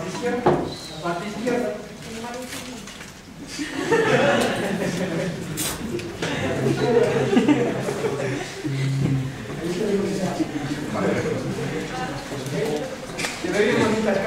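A man speaks calmly in an echoing room.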